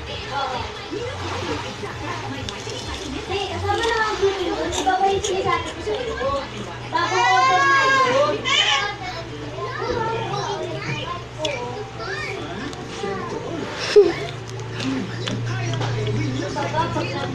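A young girl sings close into a microphone.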